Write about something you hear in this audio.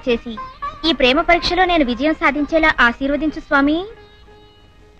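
A young woman speaks tearfully and pleadingly, close by.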